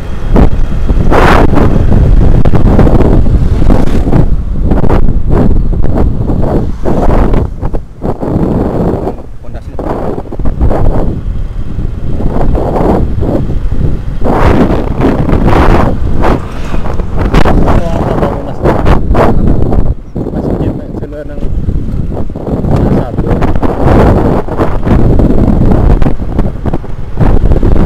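Wind buffets loudly against a moving motorbike.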